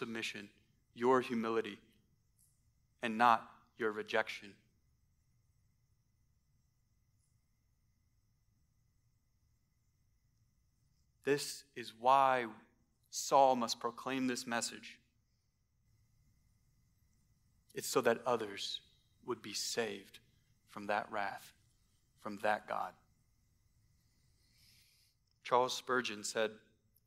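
A man speaks calmly into a microphone, pausing often.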